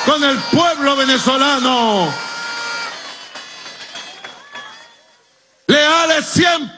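A large crowd claps and cheers.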